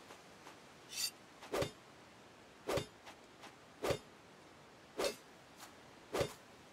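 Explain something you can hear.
An axe strikes wood with heavy thuds.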